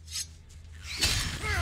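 A large winged creature screeches.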